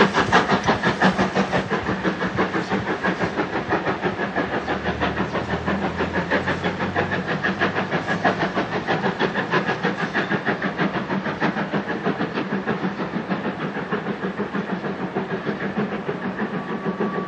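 A steam locomotive chuffs rapidly and steadily in the distance, slowly fading as it pulls away.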